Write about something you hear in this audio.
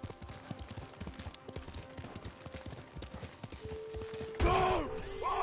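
Horse hooves thud quickly along a dirt path.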